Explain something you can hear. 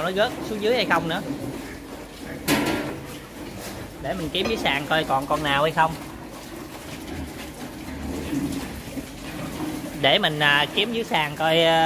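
Piglets squeal loudly and shrilly.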